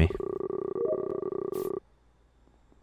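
A game jingle plays as a task completes.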